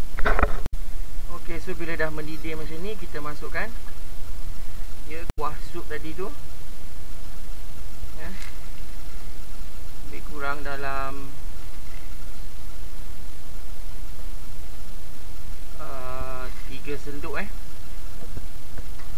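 Soup bubbles and simmers in a pot.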